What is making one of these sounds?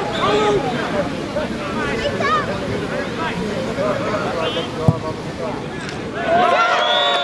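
Men shout and call out on an outdoor field.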